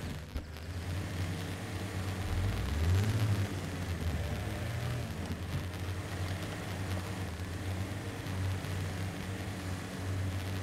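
Tyres crunch over rough rock and gravel.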